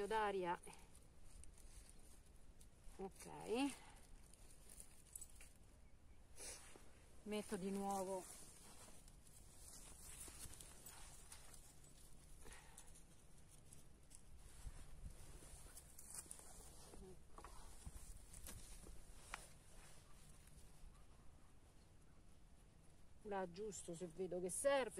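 Gloved hands pat and press loose soil.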